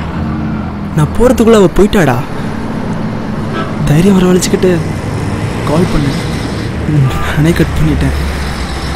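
A young man talks on a phone nearby.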